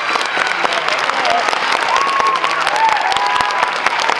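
Audience members cheer and whoop.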